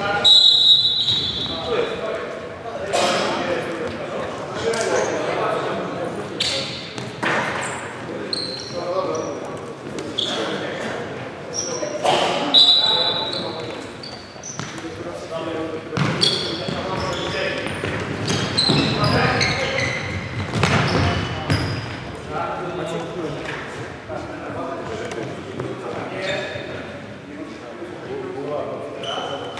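Men shout to each other in an echoing hall.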